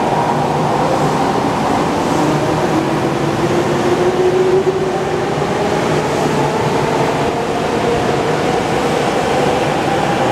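A subway train's electric motor whines, rising in pitch as the train pulls away.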